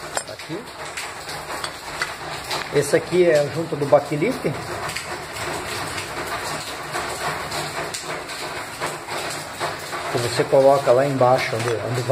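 Metal parts clink softly as they are handled.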